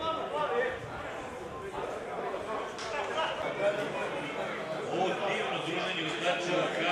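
Men call out to each other across an open field outdoors.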